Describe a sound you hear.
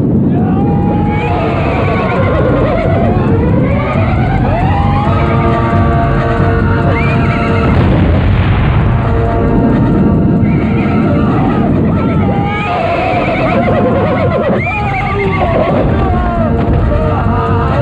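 A horse whinnies shrilly.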